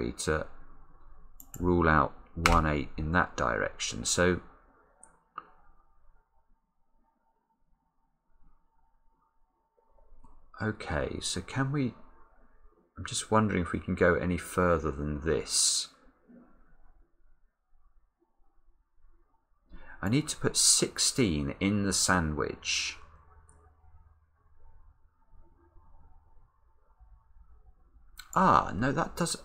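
A man speaks calmly and thoughtfully, close to a microphone, with pauses.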